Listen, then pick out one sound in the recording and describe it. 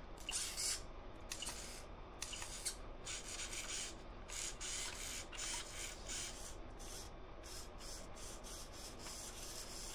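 Small servo motors whir in short bursts.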